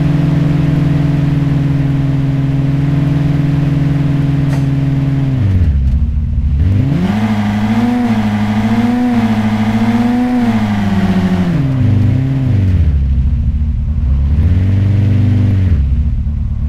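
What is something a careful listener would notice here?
A sports car engine hums and revs up and down through gear changes.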